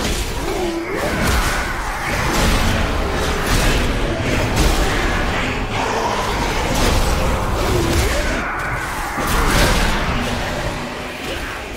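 Game spell effects whoosh and clash.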